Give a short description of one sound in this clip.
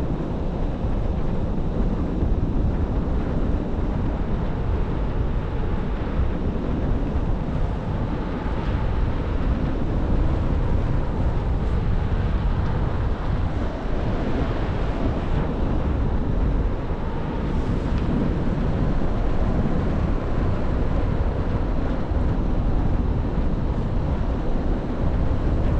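Strong wind rushes and buffets past the microphone.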